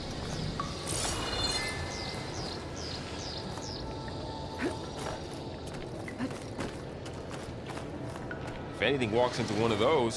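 Footsteps crunch over grass and stone.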